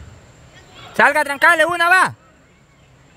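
A young woman shouts loudly from a short distance.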